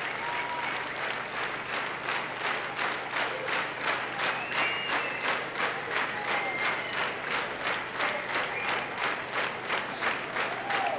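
A large crowd claps along in a steady rhythm.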